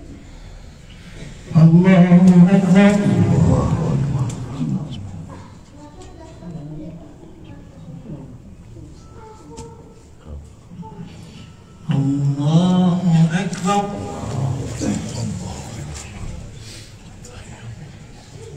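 Clothing rustles as people kneel and bow on a carpet.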